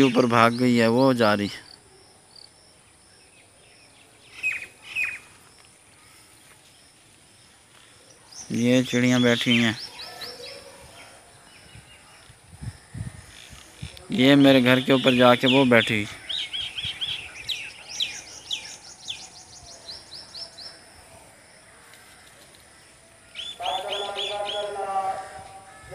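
Birds call loudly and repeatedly from the trees nearby.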